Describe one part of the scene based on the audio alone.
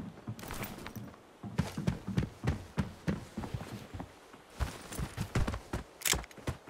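Footsteps thud on dirt at a steady walking pace.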